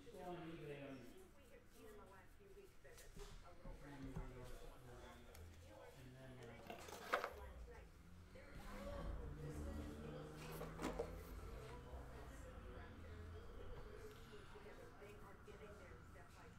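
Trading cards shuffle and flick against each other.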